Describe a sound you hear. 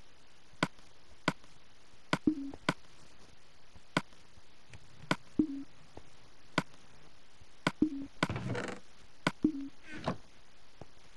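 Sharp game menu clicks tick one after another.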